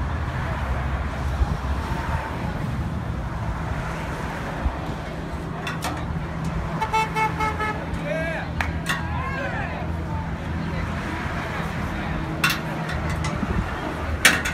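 A vehicle engine hums steadily nearby.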